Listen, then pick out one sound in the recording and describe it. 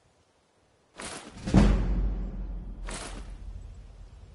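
Coins clink loudly in a game as an item is sold.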